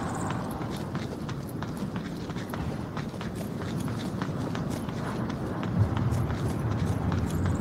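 Footsteps walk quickly on hard ground.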